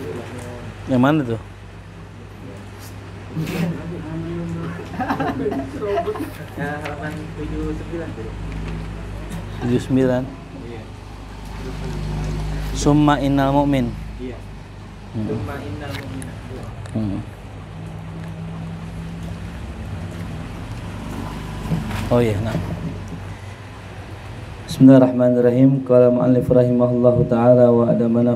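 A man chants slowly and melodiously into a nearby microphone.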